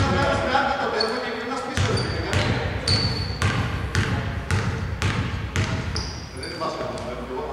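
Sneakers squeak on a hardwood court.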